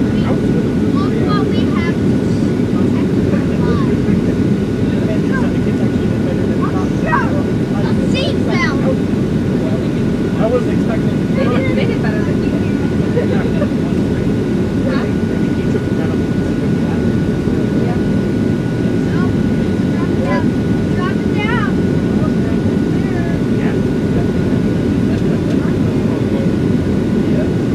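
Jet engines roar steadily inside an aircraft cabin.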